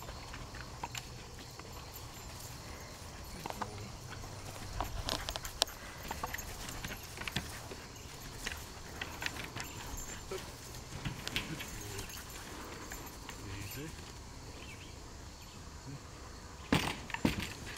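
A dog's paws thump and patter on wooden planks.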